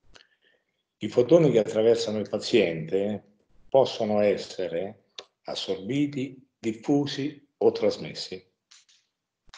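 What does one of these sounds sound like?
A man speaks calmly into a close microphone, as if lecturing.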